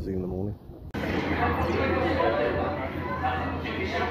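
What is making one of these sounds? A theme park ride rumbles and hums loudly indoors.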